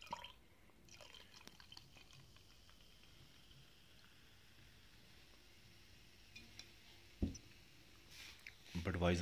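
Beer fizzes softly in a glass mug.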